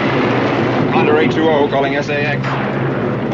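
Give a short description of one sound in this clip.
A middle-aged man speaks over an aircraft radio.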